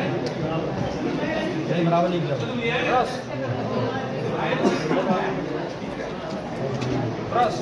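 Several men and women talk over one another in an echoing hall.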